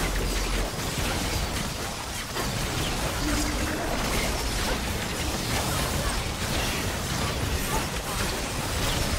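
Video game spell effects crackle and burst rapidly.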